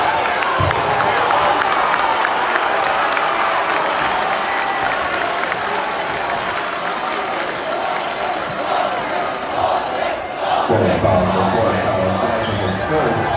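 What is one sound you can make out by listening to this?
A large crowd cheers and shouts loudly in an echoing gym.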